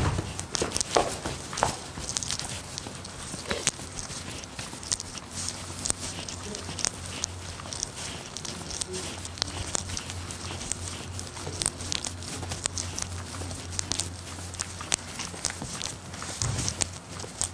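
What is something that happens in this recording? Footsteps tap on hard pavement outdoors.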